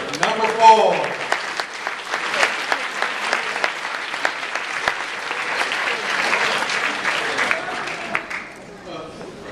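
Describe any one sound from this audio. An audience applauds and cheers in a large echoing hall.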